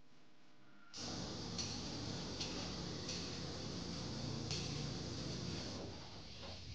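Footsteps walk slowly along a hard echoing corridor.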